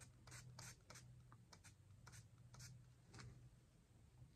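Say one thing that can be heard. A can of hairspray hisses in short bursts close by.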